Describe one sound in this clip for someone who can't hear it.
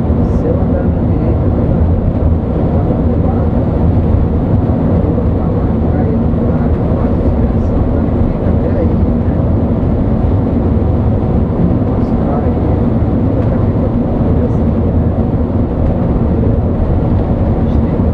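A large vehicle's engine drones steadily from inside the cab.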